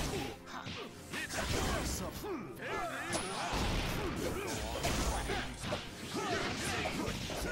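Energy attacks whoosh and crackle.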